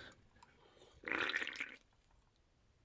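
A young man gulps a drink.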